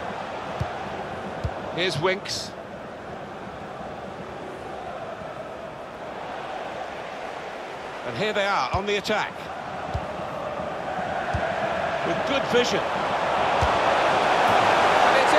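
A stadium crowd roars steadily and swells louder toward the end.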